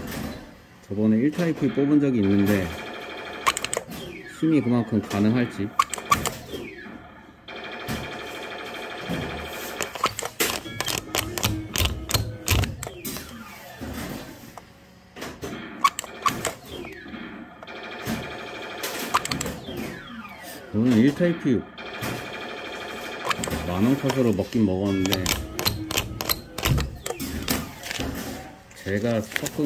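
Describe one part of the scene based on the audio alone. A claw machine plays a bright electronic tune.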